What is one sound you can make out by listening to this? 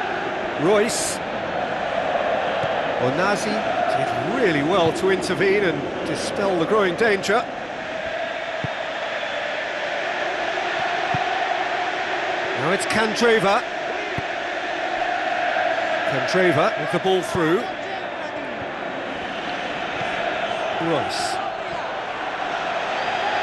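A stadium crowd roars in a steady wash of noise.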